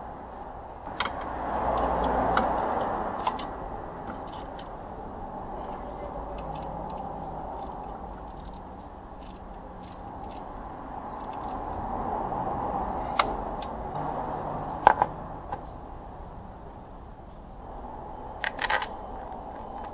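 A hand tool clicks and clinks against metal.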